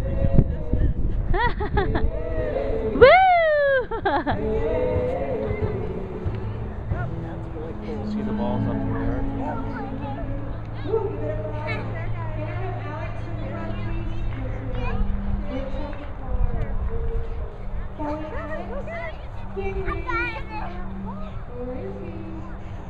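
Young children shout and squeal with excitement close by.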